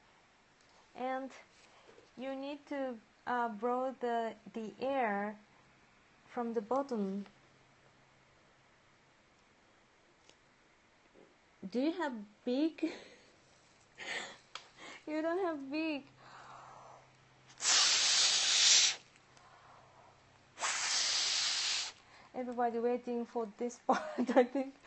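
A woman speaks calmly and close by, with pauses.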